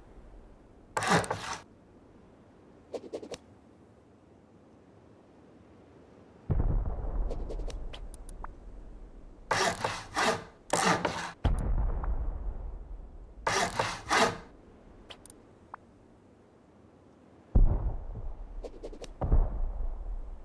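Building pieces thud into place with heavy knocks.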